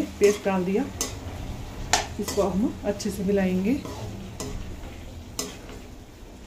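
A spatula stirs vegetables in a frying pan, clicking against the pan.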